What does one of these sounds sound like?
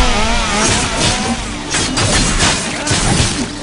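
Fiery blasts whoosh and crackle.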